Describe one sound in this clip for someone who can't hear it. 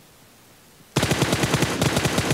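An automatic rifle fires a rapid, loud burst.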